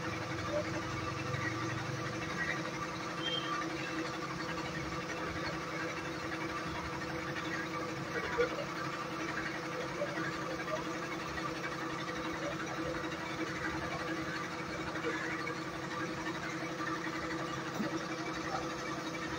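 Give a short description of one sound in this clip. Machinery hums steadily nearby.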